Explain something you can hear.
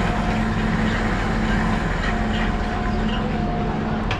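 A pallet jack's wheels rumble over concrete.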